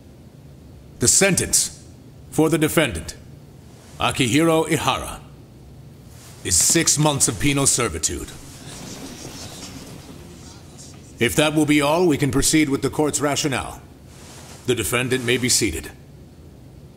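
A middle-aged man speaks slowly and gravely in short phrases.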